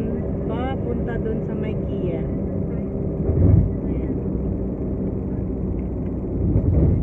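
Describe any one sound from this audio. A car engine rumbles steadily while driving.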